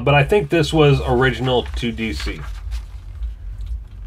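A comic book page turns with a papery rustle.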